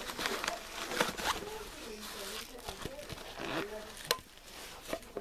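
A plastic lid clicks and snaps open.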